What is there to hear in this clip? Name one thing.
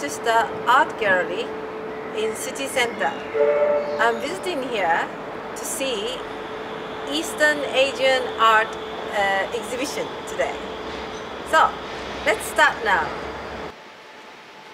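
A woman talks calmly and cheerfully close to a microphone, outdoors.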